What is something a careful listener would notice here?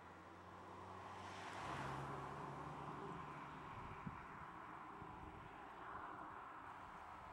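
Tyres roll over pavement.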